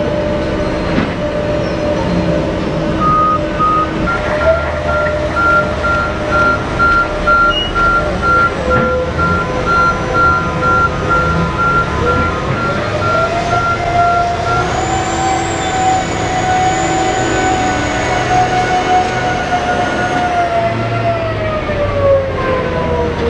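A heavy dump truck's diesel engine roars and drones steadily.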